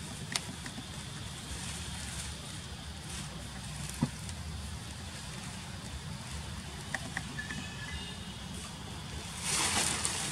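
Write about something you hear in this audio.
A monkey scrambles up a tree trunk, its claws scratching on bark.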